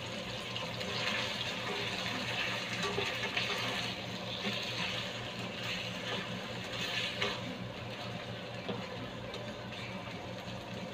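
A plastic spatula scrapes and stirs against a pan.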